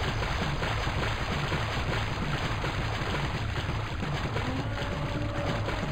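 Footsteps splash quickly through shallow water.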